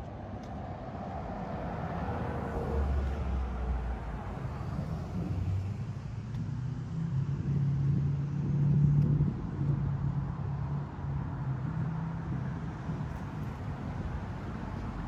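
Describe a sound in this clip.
Low wind rumbles outdoors.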